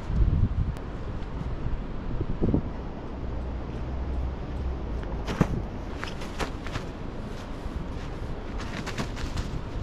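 A rolled mat rustles and flaps as it is carried and unrolled.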